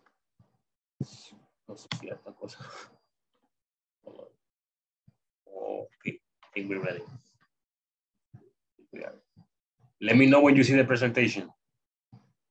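A young woman talks through an online call, in short bursts with pauses.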